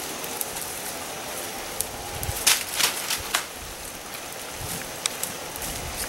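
A stick scrapes and pokes through burning twigs.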